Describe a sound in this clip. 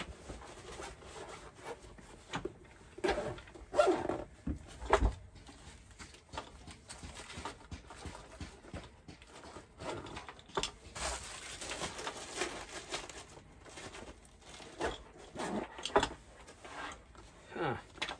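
Fabric rustles as a bag is handled.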